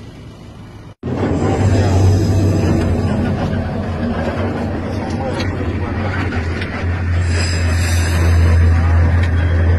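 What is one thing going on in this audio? A man speaks with animation close to a phone microphone.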